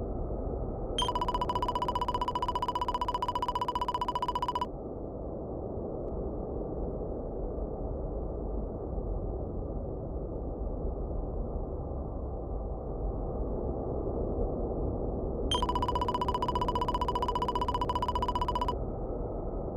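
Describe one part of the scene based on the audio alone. Rapid electronic blips chirp as game text prints out.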